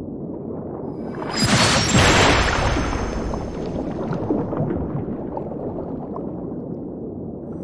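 Water bubbles and churns with a low rumble.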